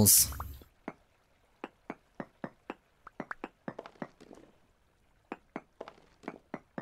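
A pickaxe chips at stone blocks with quick, repeated knocks.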